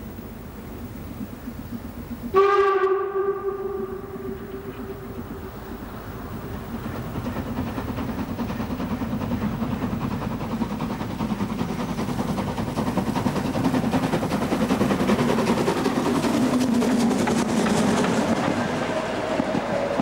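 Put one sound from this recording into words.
A steam locomotive chuffs heavily as it approaches and passes close by.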